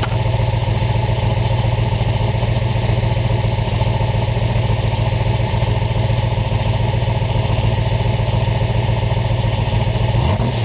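A car engine idles with a deep, rumbling exhaust burble close by.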